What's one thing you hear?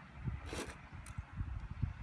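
A spoon scrapes rice in a pot.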